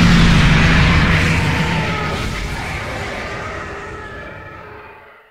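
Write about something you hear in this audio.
A rumbling explosion booms and slowly fades away.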